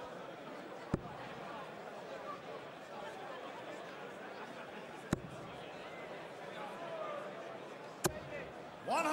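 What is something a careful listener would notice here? Darts thud into a board.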